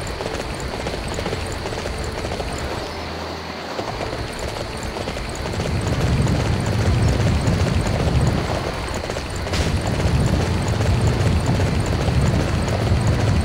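A horse gallops with thudding hoofbeats.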